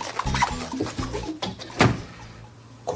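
A door shuts with a thud.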